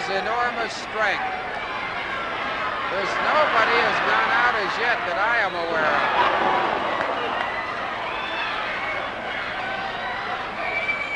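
A large crowd shouts and cheers.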